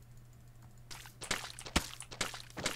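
A block breaks apart with a crumbling crunch.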